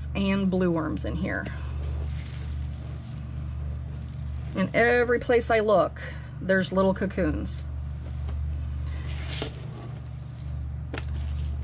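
Hands dig and rustle through damp, crumbly compost.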